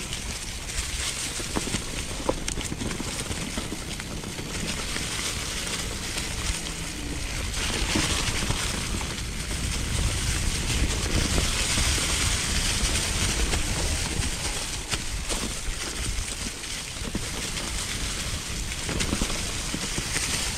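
Bicycle tyres roll and crunch over dry leaves and stones.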